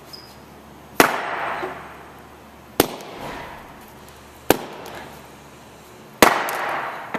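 A sledgehammer strikes hard on a concrete floor with loud echoing bangs.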